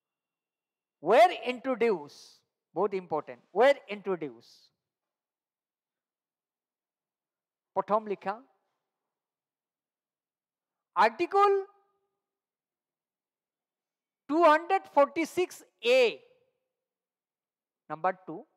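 A man speaks calmly into a headset microphone, in short phrases with pauses.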